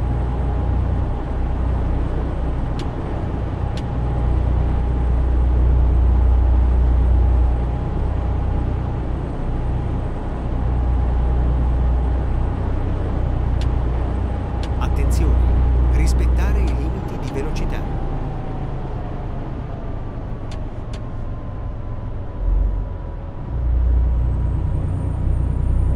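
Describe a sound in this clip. A truck engine drones steadily with a deep rumble.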